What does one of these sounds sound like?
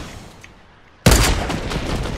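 A rifle fires a single sharp, loud shot.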